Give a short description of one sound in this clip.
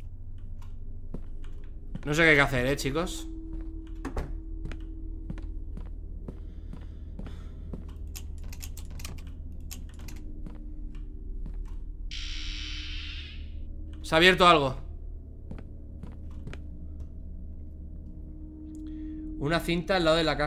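Footsteps tap softly on a wooden floor.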